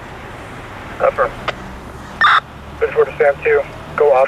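A man shouts commands loudly nearby.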